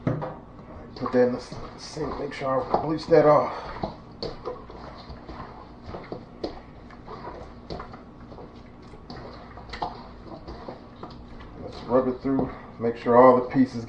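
Gloved hands squish and slap raw chicken in a metal bowl.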